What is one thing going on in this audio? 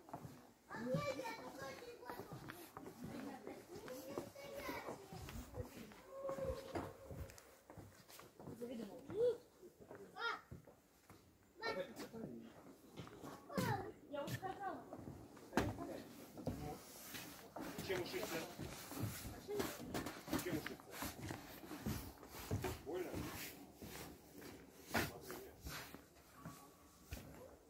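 Footsteps thud on hollow wooden boards.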